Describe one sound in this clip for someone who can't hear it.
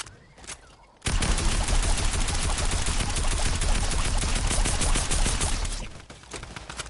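Gunfire rattles rapidly and loudly.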